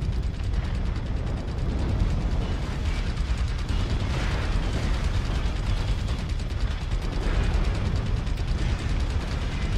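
Explosions boom loudly close by.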